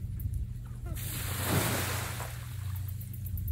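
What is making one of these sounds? A metal tub scrapes and bumps on the ground as it is tipped over.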